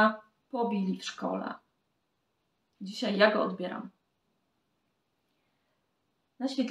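A woman speaks calmly and closely, in short bursts with pauses.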